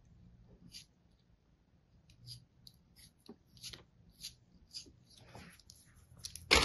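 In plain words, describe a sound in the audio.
A small knife scrapes and crumbles sand in short, soft crackles.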